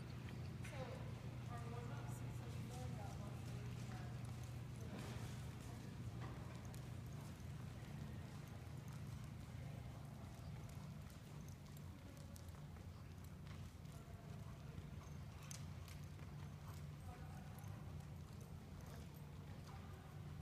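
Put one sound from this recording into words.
A horse's hooves thud softly on soft dirt at a trot.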